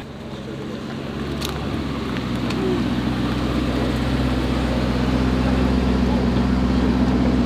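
A powerful car engine idles with a deep, steady rumble.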